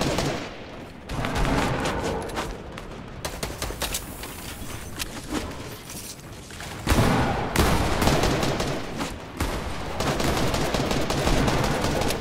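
Footsteps thud quickly on wooden ramps.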